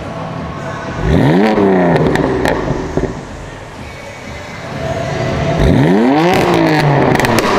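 A sports car engine revs hard twice, rising sharply and falling back.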